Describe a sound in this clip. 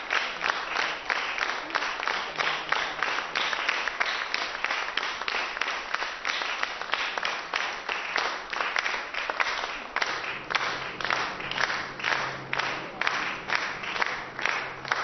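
An audience applauds steadily in a room with some echo.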